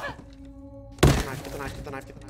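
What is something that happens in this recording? A body thuds onto a wooden floor.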